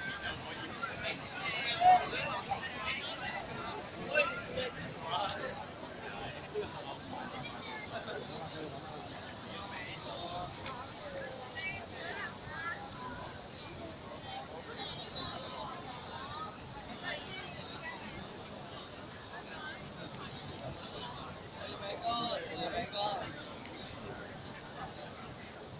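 A large outdoor crowd murmurs and chatters all around.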